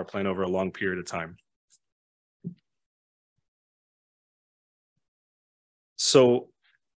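A man speaks calmly through a microphone, with pauses.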